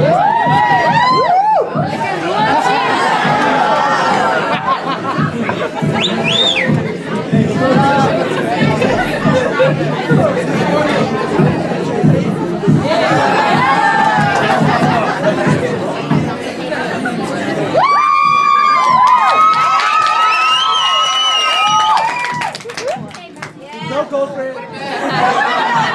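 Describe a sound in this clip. A crowd of people chatters loudly indoors.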